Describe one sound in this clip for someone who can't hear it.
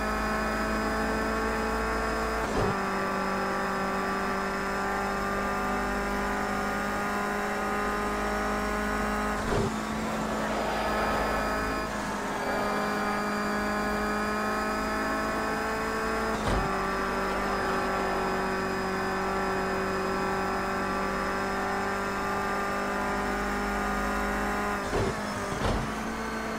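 A racing car engine roars steadily at high revs, dropping briefly as gears shift.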